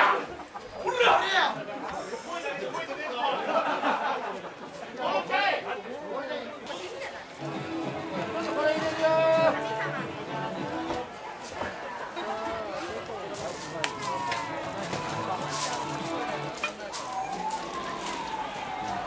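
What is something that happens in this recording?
A crowd of men and women talks and calls out nearby, outdoors.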